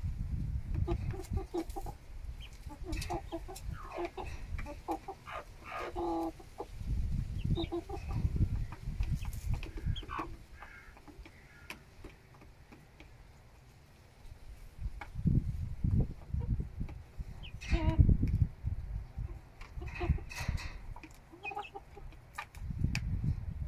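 Chickens peck at food in a metal bowl, tapping quickly.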